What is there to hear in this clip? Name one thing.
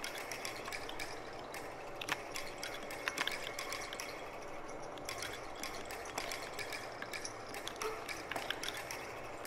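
Falling blocks in a puzzle game lock into place with short, sharp clicks.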